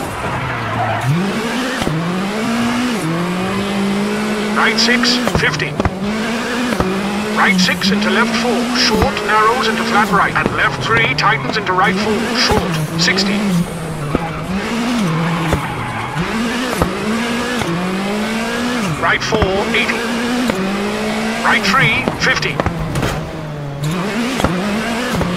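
A rally car engine revs hard and drops in pitch with each gear change.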